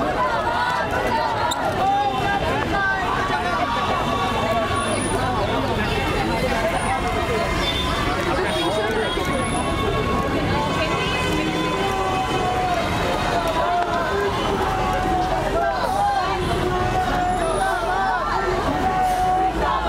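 A crowd of men and women chatters and shouts loudly outdoors.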